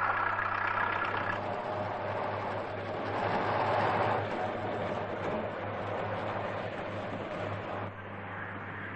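A truck engine hums as the truck drives slowly.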